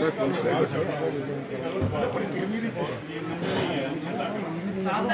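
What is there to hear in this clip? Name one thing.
Several men talk over one another.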